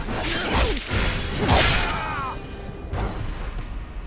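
Blades slash and clash in a close fight.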